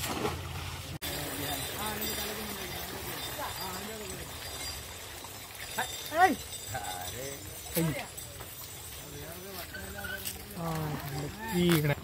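A man wades through shallow water, splashing.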